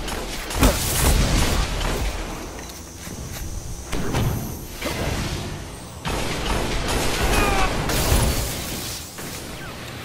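Rapid gunfire bursts out, with sharp loud cracks.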